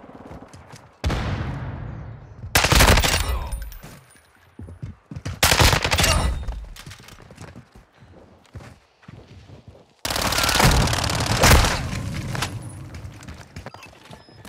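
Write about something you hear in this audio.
Gunshots fire in loud bursts with echoing booms.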